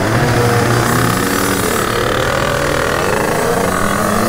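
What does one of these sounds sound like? Other motorbike engines buzz just ahead.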